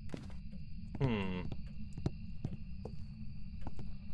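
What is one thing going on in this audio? Footsteps thud on a creaky wooden floor.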